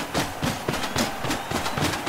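A stadium crowd cheers steadily.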